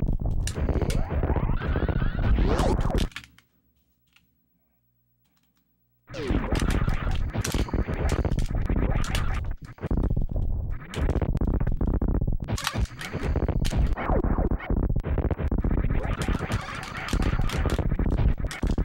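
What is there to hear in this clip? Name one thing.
Loud rock music plays from a video game.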